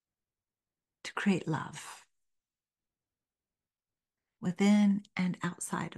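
An elderly woman speaks calmly and expressively into a close microphone.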